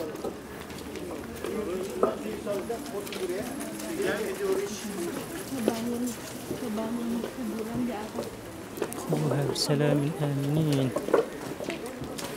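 Footsteps shuffle on stone paving.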